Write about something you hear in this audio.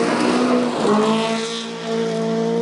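Gravel sprays and rattles under spinning tyres.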